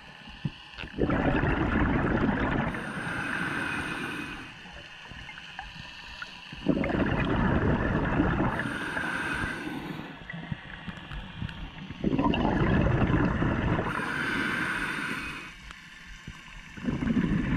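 A diver's exhaled bubbles rumble and gurgle loudly underwater in repeated bursts.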